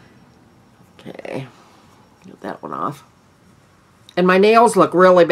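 A middle-aged woman speaks calmly and close up, with pauses.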